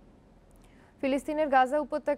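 A young woman reads out the news clearly into a microphone.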